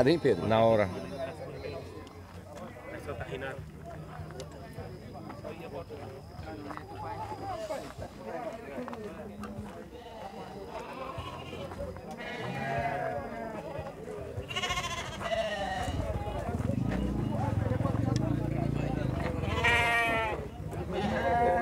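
Goats bleat loudly nearby.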